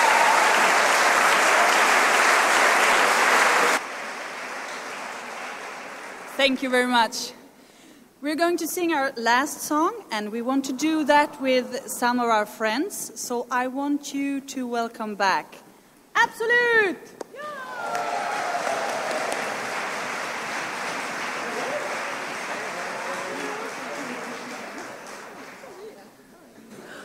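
An audience claps and cheers in a large hall.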